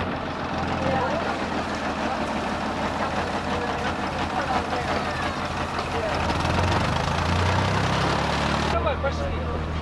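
A boat engine chugs and rumbles close by.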